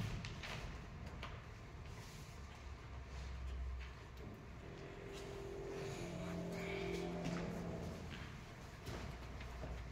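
A martial arts uniform snaps sharply with quick movements.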